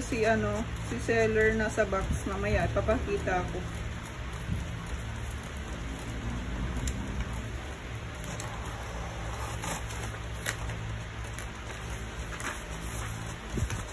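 A printer hums and whirs steadily as it feeds paper through.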